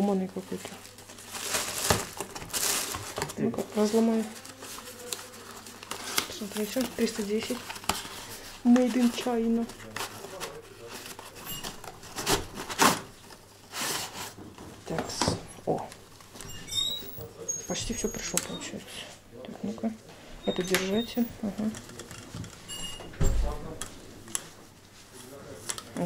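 Plastic wrapping crinkles as it is handled.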